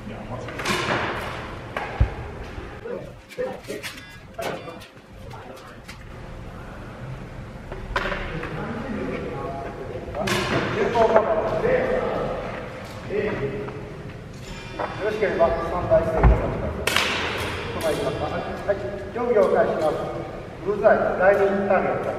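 Men talk casually nearby in an echoing hall.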